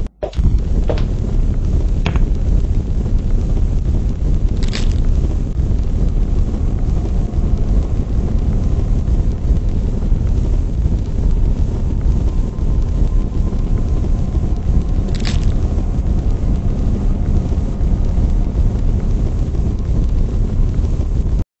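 A fire roars steadily.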